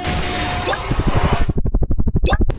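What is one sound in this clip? A vehicle crashes with a loud burst of crunching noise.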